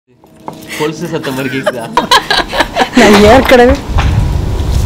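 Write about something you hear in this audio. A middle-aged woman talks and laughs close by.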